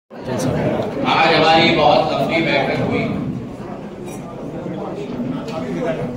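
A crowd of men and women talk at once, close by.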